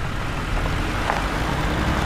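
A car engine idles and rumbles low.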